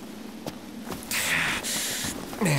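A young man speaks with a groan.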